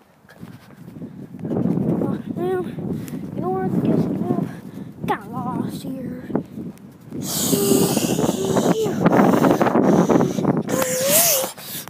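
A young boy talks close to the microphone with animation.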